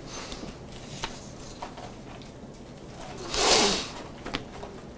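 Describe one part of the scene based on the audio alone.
Paper rustles loudly.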